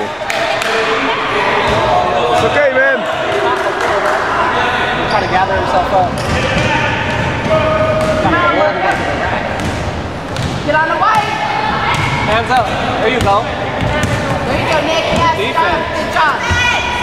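Children shout and call out across an echoing hall.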